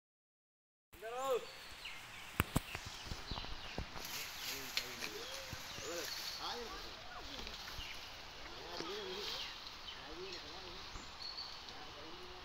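Leaves rustle and twigs snap as a man pushes through bushes.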